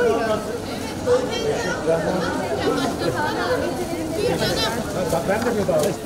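A crowd of women chatter close by.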